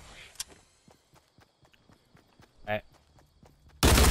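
Footsteps run quickly across grass.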